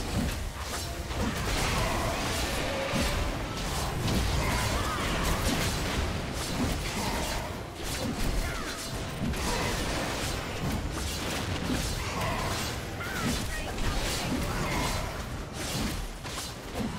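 Magic spells crackle and burst in a fast, busy fight.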